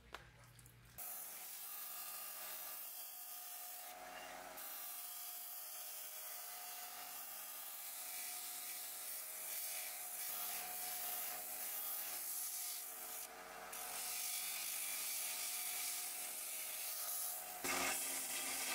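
A disc sander whirs steadily as metal grinds against it with a harsh hiss.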